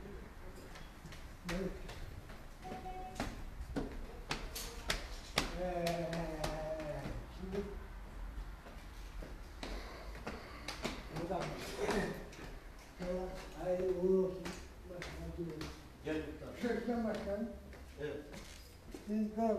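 Footsteps tap on hard stairs and floor.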